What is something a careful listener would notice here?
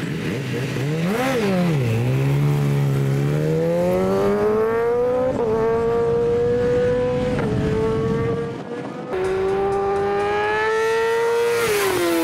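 A racing motorcycle engine roars as it accelerates away and shifts up through the gears.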